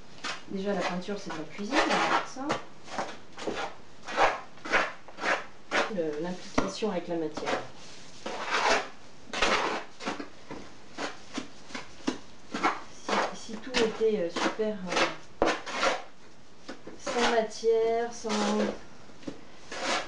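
A trowel scrapes and taps against rough grit.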